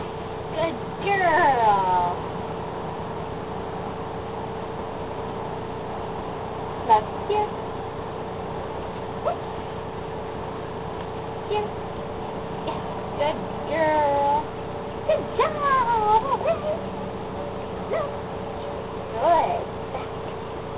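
A young girl talks to a dog in a lively, coaxing voice.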